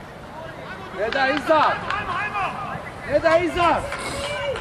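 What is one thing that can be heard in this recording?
Players shout across an outdoor football pitch.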